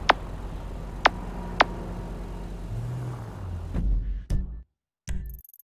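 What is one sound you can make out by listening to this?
A car engine idles.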